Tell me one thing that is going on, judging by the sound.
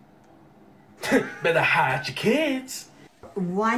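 A young man laughs through an online call.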